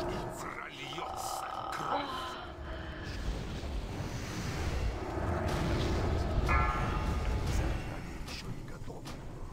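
Magic spells whoosh and crackle in a busy battle.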